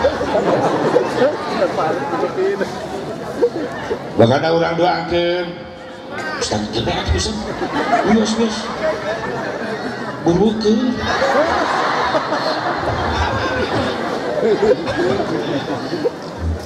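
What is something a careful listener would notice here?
An elderly man speaks with animation through a microphone and loudspeakers.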